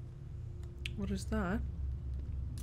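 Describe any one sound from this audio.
A young woman speaks briefly through a headset microphone, her voice rising.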